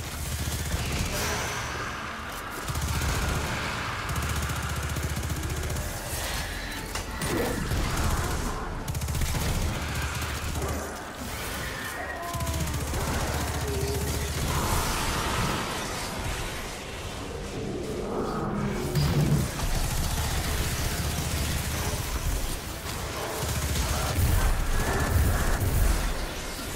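Energy blasts crackle and explode.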